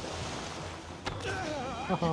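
An axe strikes a man with a sharp blow.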